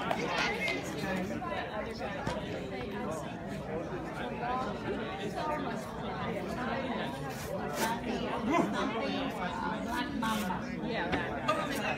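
A crowd of spectators chatters and calls out in a large indoor hall.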